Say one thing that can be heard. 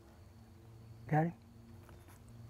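A turkey gobbles loudly nearby.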